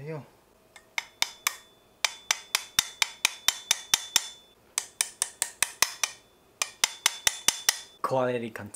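A small ratchet tool clicks rapidly in quick bursts.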